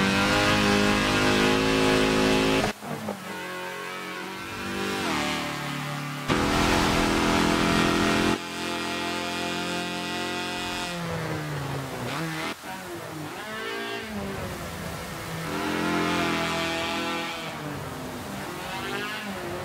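A racing car engine roars at high revs, rising and falling in pitch as it shifts gears.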